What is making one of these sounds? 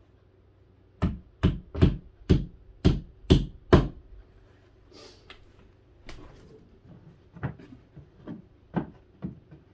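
Wooden boards knock and thud sharply as a box is fitted together.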